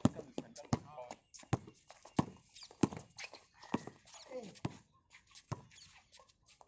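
A basketball bounces sharply on a hard outdoor court.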